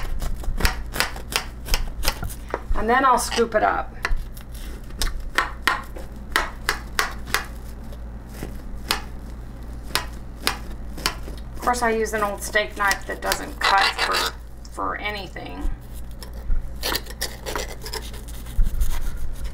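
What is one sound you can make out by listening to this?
A knife crunches through a crisp baked crust.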